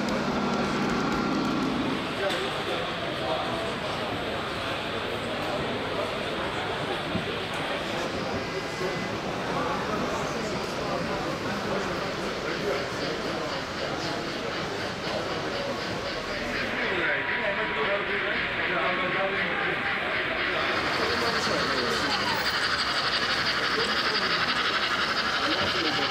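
A model train rumbles along its track.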